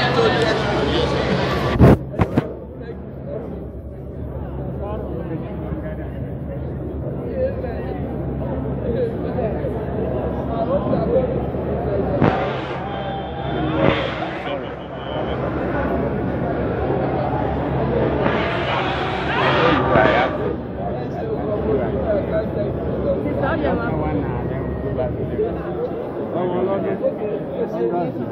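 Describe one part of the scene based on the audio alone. A crowd of people chatter in an echoing hall.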